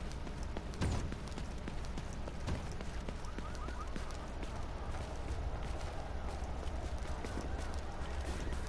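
Footsteps tread steadily on hard ground and snow.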